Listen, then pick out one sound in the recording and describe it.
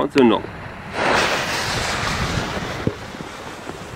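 A fuse ignites with a sharp fizz.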